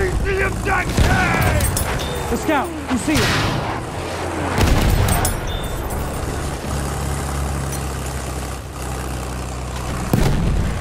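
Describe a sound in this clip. Loud explosions boom and crack.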